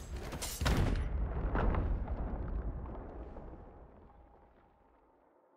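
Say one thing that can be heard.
A loud blast booms and rumbles away.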